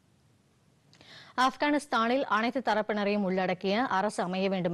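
A young woman reads out news clearly into a microphone.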